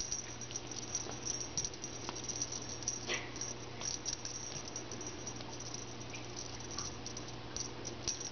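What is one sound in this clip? A feather toy rustles as it is swung about.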